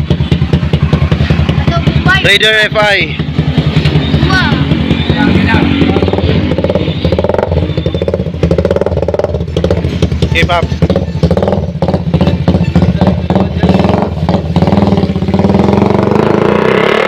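A motorcycle engine idles loudly close by with a fast, rough throb.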